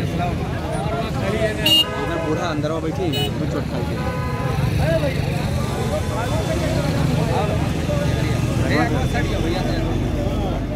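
A crowd of men talk over one another outdoors.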